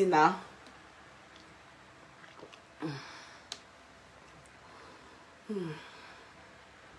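A woman gulps water from a bottle close by.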